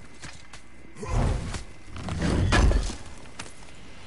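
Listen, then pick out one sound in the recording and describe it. A heavy chest lid scrapes and thumps open.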